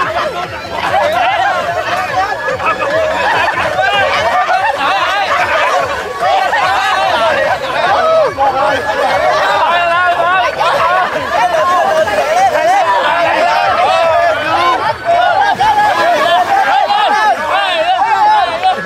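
A crowd of young men and women shout and cheer loudly outdoors.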